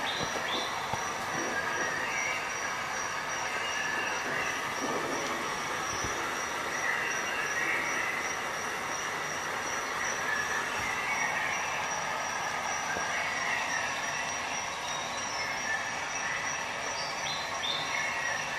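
Music plays through a small portable loudspeaker nearby.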